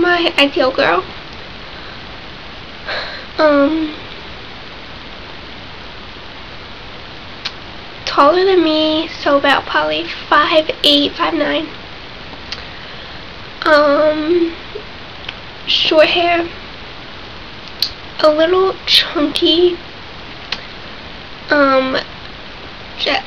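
A young woman talks calmly and close by, with pauses.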